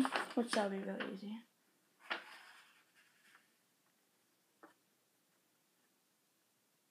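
A sheet of paper rustles in a girl's hands.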